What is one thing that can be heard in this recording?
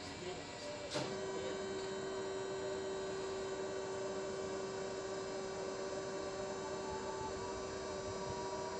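A machine hums steadily nearby.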